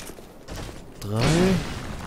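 A heavy blade whooshes through the air and strikes with a clang.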